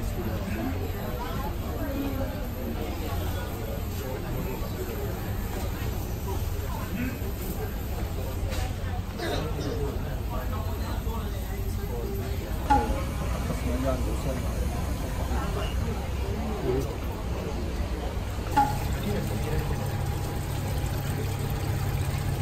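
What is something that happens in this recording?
A refrigerated display case hums steadily.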